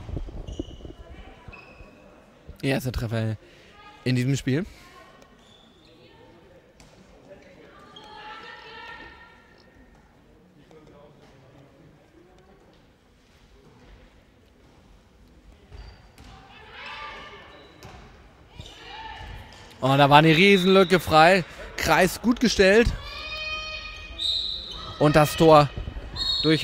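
Players' shoes squeak on a hard floor.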